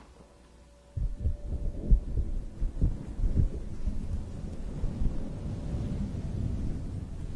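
A fuzzy blanket rubs and rustles loudly against a microphone.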